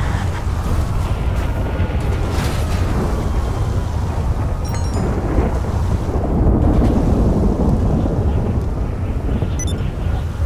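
A car engine rumbles steadily as a car drives slowly over rough ground.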